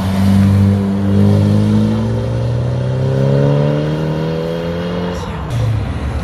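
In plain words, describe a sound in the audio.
A sports car engine roars loudly and revs higher as the car accelerates away.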